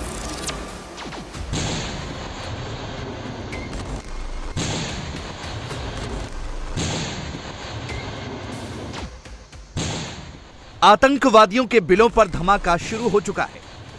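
Explosions boom with rumbling noise.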